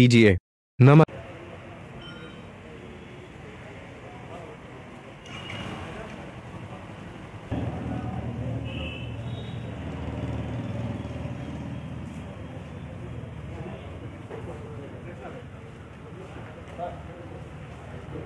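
Several men talk with one another in low voices, a little way off.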